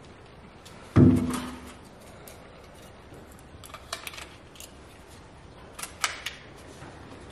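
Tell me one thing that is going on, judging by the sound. Hard plastic parts click and snap together.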